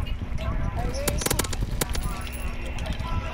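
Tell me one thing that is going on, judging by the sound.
Muffled gunshots pop in quick succession.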